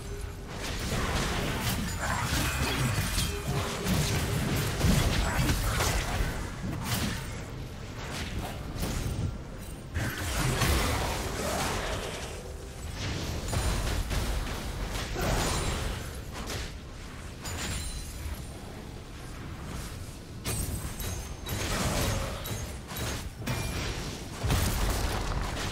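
Impact sounds thump and clash as game characters strike each other.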